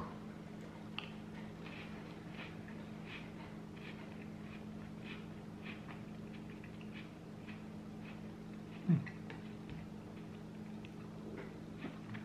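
A man chews food quietly.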